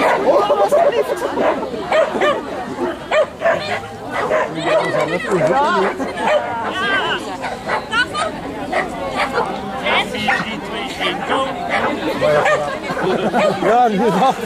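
A woman calls out commands to a dog outdoors.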